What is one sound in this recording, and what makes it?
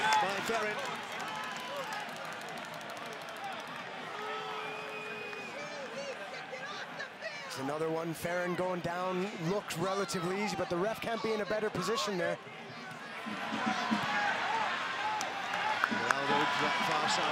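A large crowd cheers and chants in an open-air stadium.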